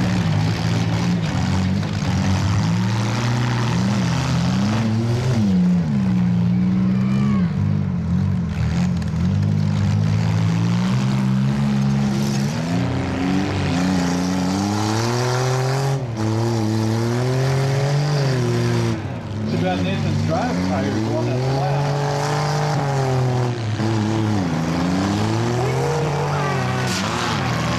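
Several car engines roar and rev loudly throughout.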